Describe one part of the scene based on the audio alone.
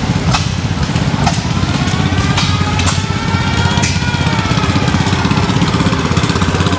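A small tractor engine chugs rapidly nearby.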